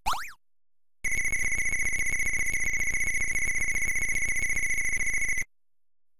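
A steady, high electronic tone rings, then stops abruptly.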